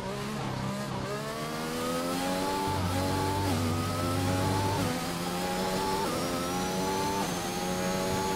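A racing car engine screams as it revs up through the gears, dropping briefly at each shift.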